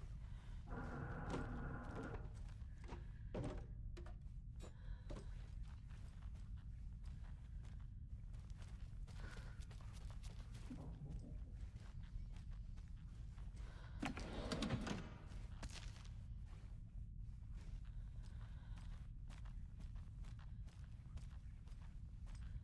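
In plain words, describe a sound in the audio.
Footsteps creak slowly on wooden floorboards.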